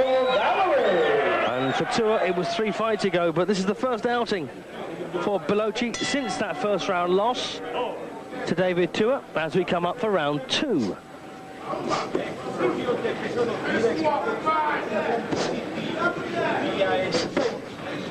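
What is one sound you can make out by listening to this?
Gloved punches thud against a body.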